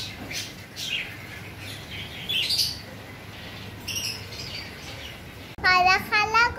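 Budgies chirp and twitter.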